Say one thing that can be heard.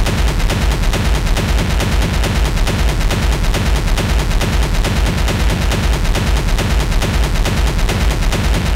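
Loud electronic dance music plays with a fast, steady, thumping beat.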